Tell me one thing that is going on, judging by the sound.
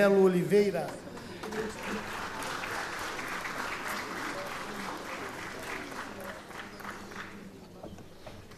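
A large crowd murmurs and applauds in an echoing hall.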